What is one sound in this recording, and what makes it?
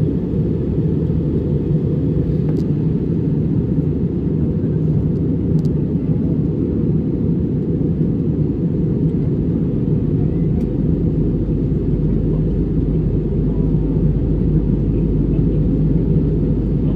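A jet airliner's engines roar with a steady low drone inside the cabin.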